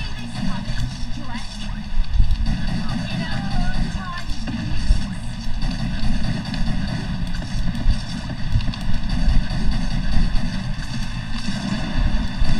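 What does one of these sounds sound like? An energy gun fires with crackling electric blasts.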